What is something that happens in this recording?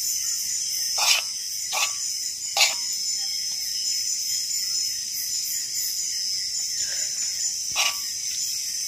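A metal spoon clinks and scrapes against a pan and a plate.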